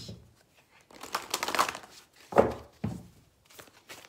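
Playing cards are shuffled with a riffling rustle.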